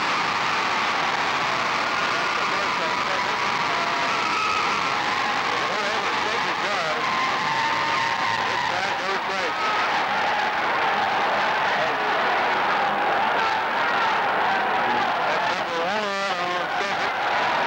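A large crowd cheers and chatters loudly in an echoing gym.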